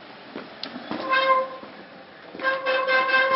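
A bicycle bell rings nearby.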